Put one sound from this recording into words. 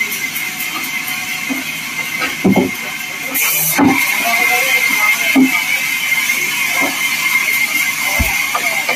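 A band saw runs steadily with a high whine.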